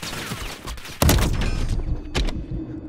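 A rifle fires a loud, sharp shot that echoes away.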